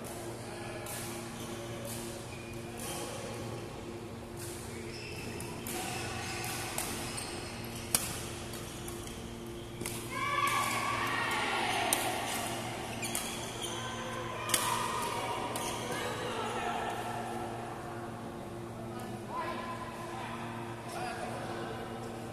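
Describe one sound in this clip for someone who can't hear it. Badminton rackets strike a shuttlecock with sharp pops in a large echoing hall.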